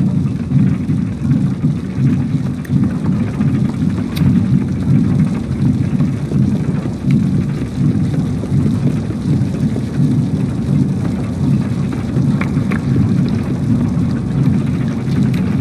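A small child's footsteps patter on wooden floorboards.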